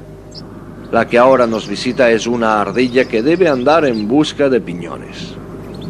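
A bird calls loudly with a warbling, wavering song.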